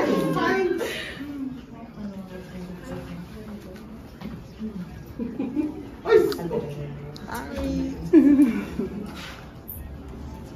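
Several women chatter and laugh in a room.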